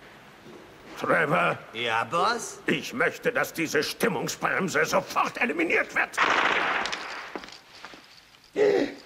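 A man talks with animation in a gruff, comic voice, close by.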